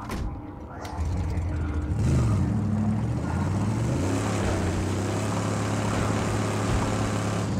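A car engine starts up and rumbles steadily, revving.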